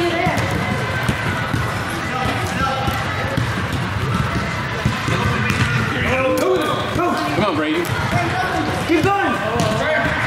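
Young players shout to each other in a large echoing hall.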